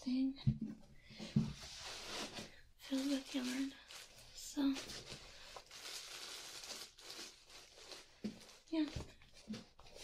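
A plastic bag rustles as it is handled.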